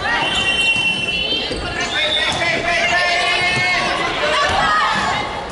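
A volleyball is struck with a dull thud.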